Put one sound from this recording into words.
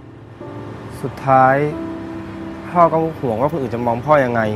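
A young man answers calmly nearby.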